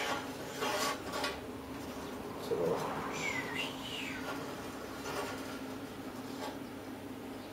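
A metal torch rod scrapes and taps against a steel plate.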